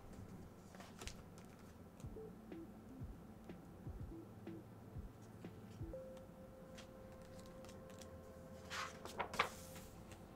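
A stiff book page is turned with a papery flap.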